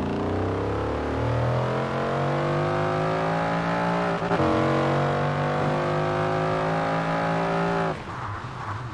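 A car engine roars as it accelerates through the gears.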